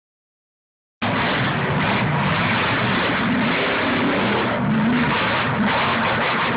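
A monster truck engine roars loudly at full throttle.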